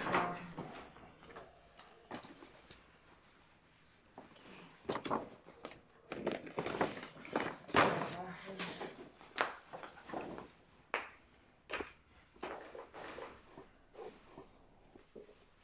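Paper shopping bags rustle and crinkle as they are picked up.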